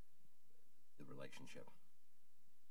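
An elderly man speaks briefly and quietly into a microphone.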